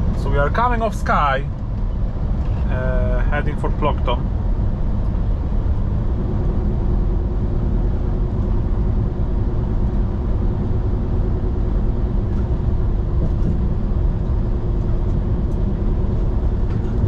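Tyres roll and hum on the road surface.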